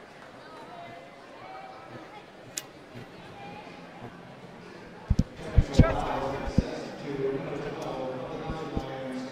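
A man speaks firmly to a group, close by, in an echoing hall.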